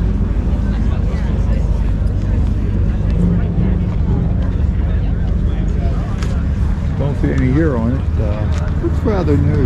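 Wind rumbles steadily against the microphone.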